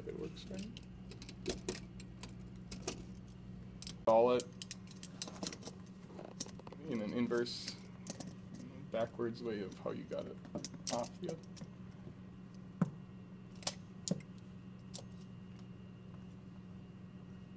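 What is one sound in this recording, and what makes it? Metal parts click and clank as they are fitted together.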